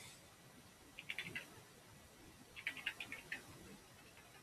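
Keys clack on a computer keyboard in short bursts.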